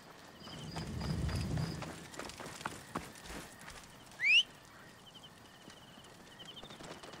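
Footsteps crunch softly on dirt and grass.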